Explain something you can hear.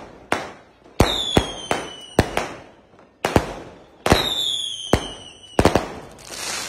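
Fireworks shoot up with whistling whooshes.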